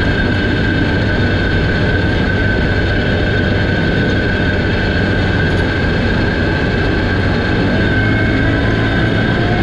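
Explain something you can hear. Tyres rumble over a dirt road.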